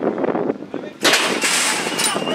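Metal starting gates bang open with a loud clang.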